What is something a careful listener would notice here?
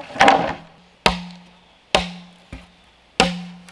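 Hollow bamboo poles clunk against each other as they are set down.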